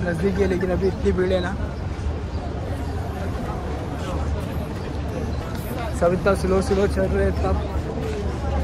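A young man talks calmly, close to the microphone.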